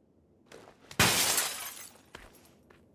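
A person scrambles out through a window with a loud rustle and thump.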